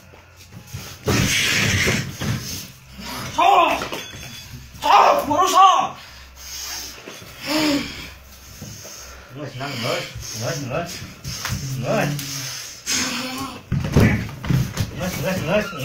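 Blows and slaps land on a body with dull thuds.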